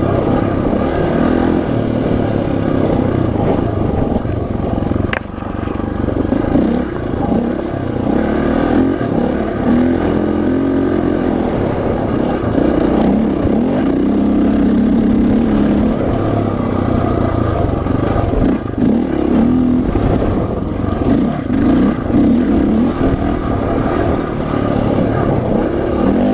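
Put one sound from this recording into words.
Tyres crunch over a dirt trail.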